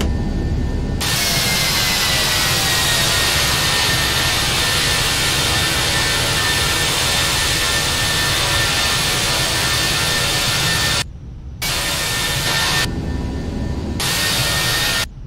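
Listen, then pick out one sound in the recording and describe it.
An airliner's jet engines roar loudly with a high whine as it climbs away.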